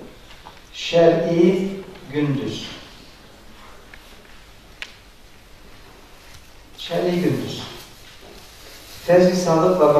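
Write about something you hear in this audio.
An adult man lectures calmly into a headset microphone.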